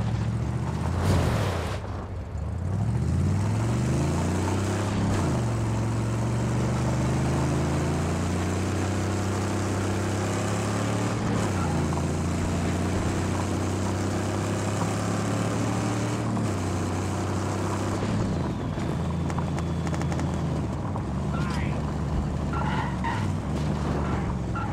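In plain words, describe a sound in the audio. A car engine roars and revs, shifting up and down as it speeds along.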